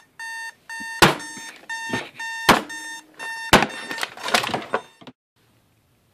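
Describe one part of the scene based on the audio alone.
A hand thumps on an alarm clock to silence it.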